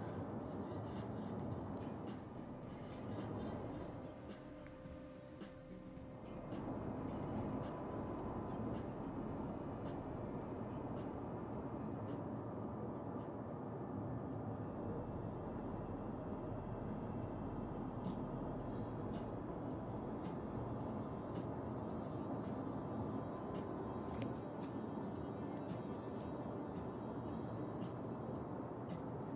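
Water rushes and churns steadily against a ship's hull.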